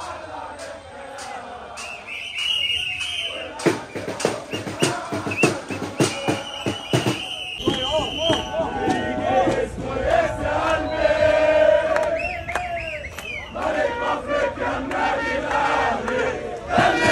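A crowd of men chants and sings loudly outdoors.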